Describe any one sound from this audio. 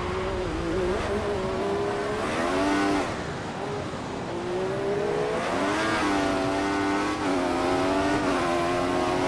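A Formula One car's engine rises in pitch as it accelerates out of a corner.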